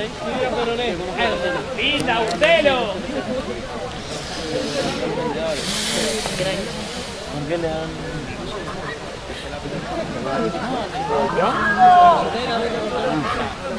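Young men on a pitch call out to each other.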